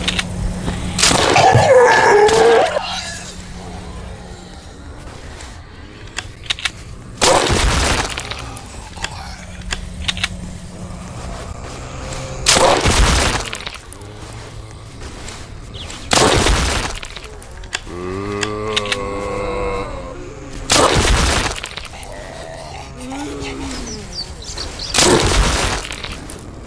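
A shotgun fires single loud blasts.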